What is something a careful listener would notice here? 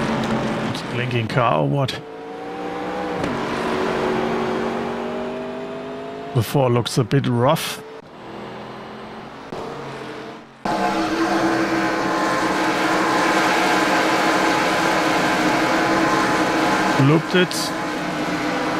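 A race car's engine whines loudly as it passes by close.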